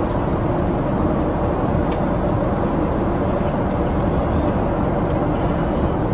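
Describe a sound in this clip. Buttons on a seat control click as they are pressed.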